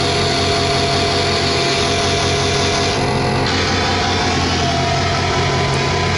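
Electronic synthesizer tones drone and warble loudly throughout.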